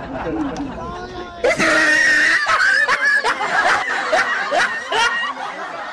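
Men laugh loudly.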